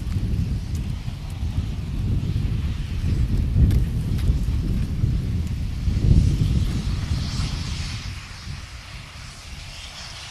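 A steam locomotive chuffs heavily as it hauls a train, then fades.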